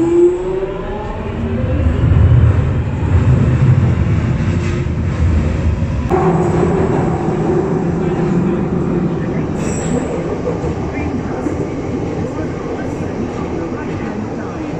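A train rumbles loudly along the tracks in a tunnel.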